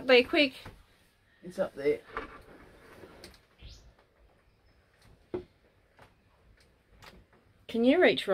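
A man knocks and clicks at a ceiling hatch.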